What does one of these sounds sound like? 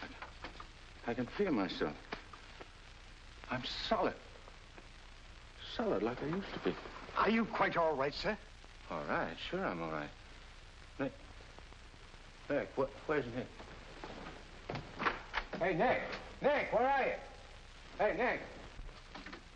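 An elderly man speaks urgently and sternly.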